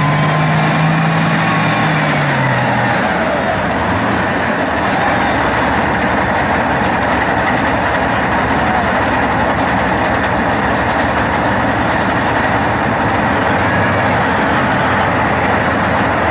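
Tank tracks clank and grind through mud.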